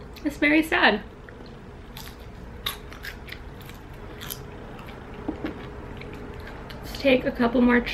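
Crunchy chips crunch as a young woman chews.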